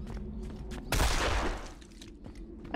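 A gunshot bangs loudly once.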